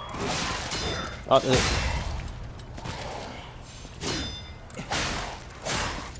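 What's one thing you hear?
Blades swish and slash through the air in quick bursts.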